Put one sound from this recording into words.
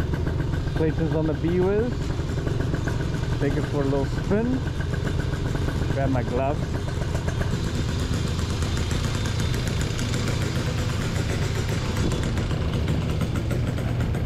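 A motorcycle engine idles with a steady low rumble close by.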